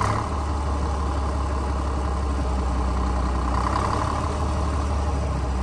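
A small engine runs loudly with a steady, low rumble close by.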